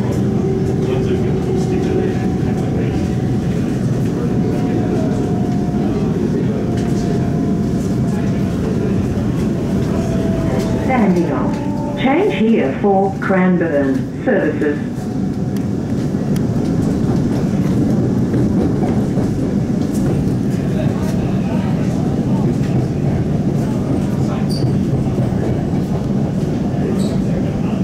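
A train rumbles and rattles steadily along the tracks from inside a carriage.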